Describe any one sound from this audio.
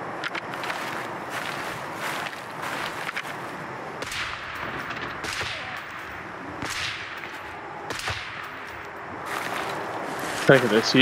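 Footsteps swish through tall grass at a steady pace.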